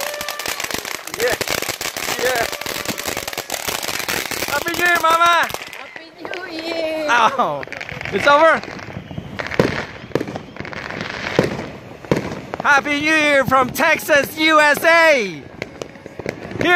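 A firework fountain hisses and crackles steadily nearby.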